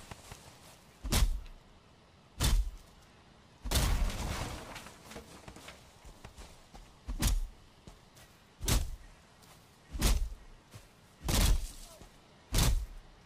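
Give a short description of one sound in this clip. An axe chops into wood with regular, dull thuds.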